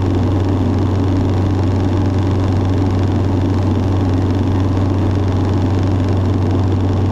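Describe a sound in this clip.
A small plane's propeller engine drones loudly and steadily from inside the cabin.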